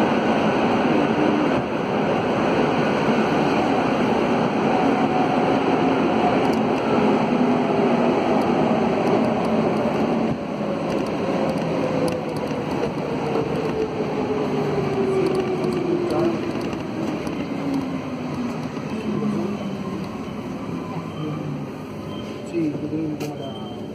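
A train rumbles loudly along the tracks.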